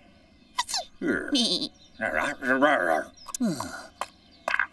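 A cartoon dog mumbles and grumbles with animation.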